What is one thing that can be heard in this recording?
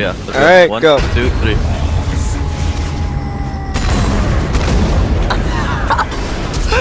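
Game sound effects of a fight clash and crackle.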